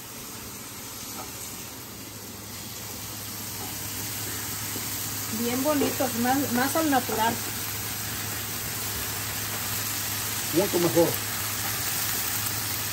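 Vegetables sizzle in a frying pan.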